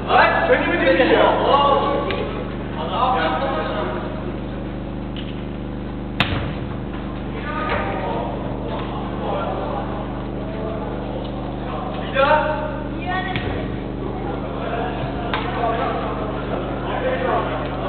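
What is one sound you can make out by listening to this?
Men shout to each other in an echoing indoor hall.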